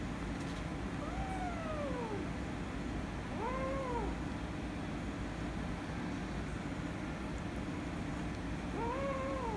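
A kitten meows in short, high cries.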